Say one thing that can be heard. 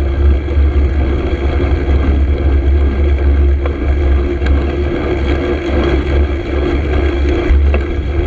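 A car engine hums close behind, following slowly.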